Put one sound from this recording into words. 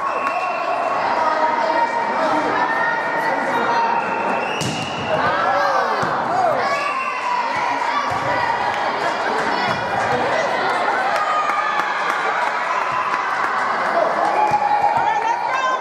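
A crowd of spectators and young girls shouts and cheers in an echoing gym.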